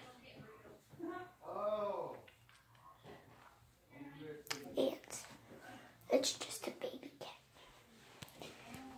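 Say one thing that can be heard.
A young girl speaks softly and playfully close to a phone microphone.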